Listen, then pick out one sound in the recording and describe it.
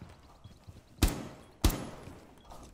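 A gun fires single sharp shots indoors.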